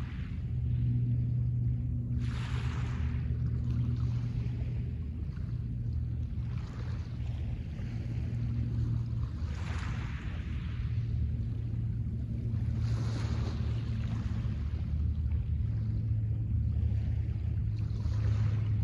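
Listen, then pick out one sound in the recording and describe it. Wind rumbles over the microphone outdoors.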